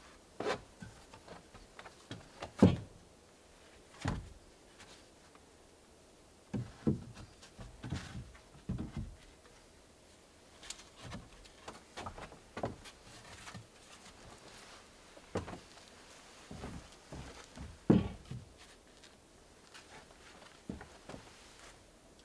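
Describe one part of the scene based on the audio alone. Wooden boards knock and clatter against a deck.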